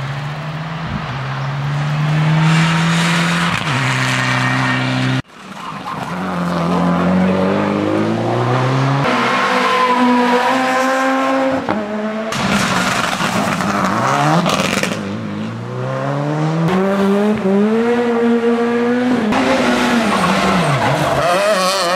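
A rally car engine roars and revs hard as cars speed past.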